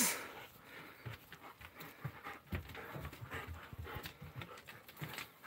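Dogs' claws click and patter on a hard floor.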